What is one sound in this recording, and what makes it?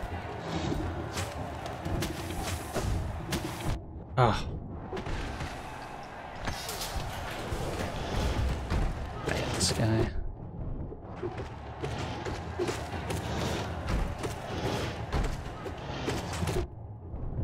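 Sword slashes and hits crack sharply in quick bursts.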